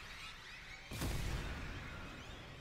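Fire roars in a burst of flames.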